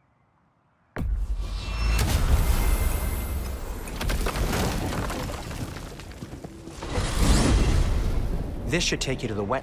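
A magic gateway opens with a deep, roaring whoosh.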